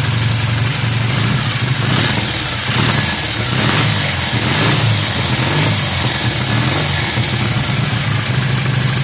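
A motorcycle engine idles close by with a steady, rumbling throb.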